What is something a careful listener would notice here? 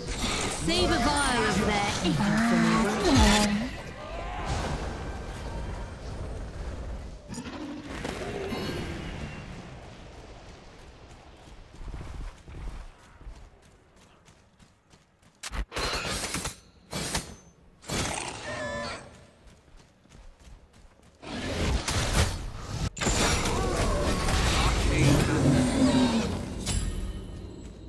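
Magic blasts whoosh and crackle in a video game battle.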